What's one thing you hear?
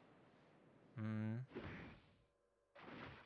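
A sharp whoosh sounds as a fighter lunges in an attack.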